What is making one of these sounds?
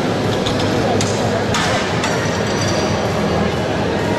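Metal weight plates clank against a bar.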